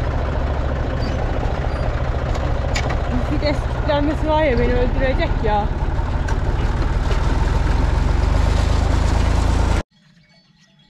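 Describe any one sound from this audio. A tractor engine rumbles loudly and steadily up close.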